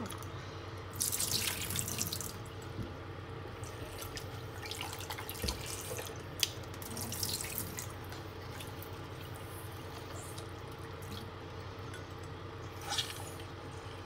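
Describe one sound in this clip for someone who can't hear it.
Glass clinks and scrapes against a metal sink.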